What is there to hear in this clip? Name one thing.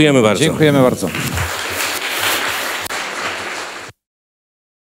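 An audience applauds in a large hall.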